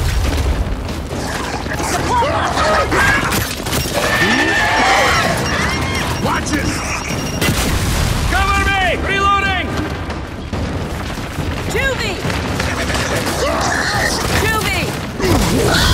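Heavy boots thud on the ground as a soldier runs.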